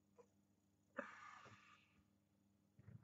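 A man slurps wine noisily, close by.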